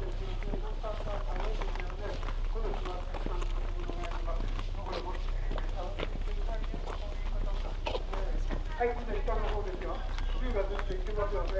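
Footsteps shuffle on a walkway.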